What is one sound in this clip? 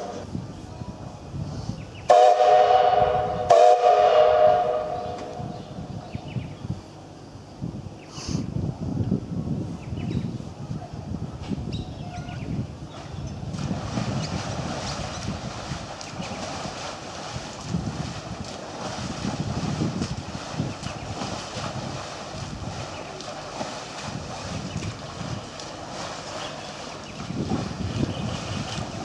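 Wind buffets outdoors in low gusts.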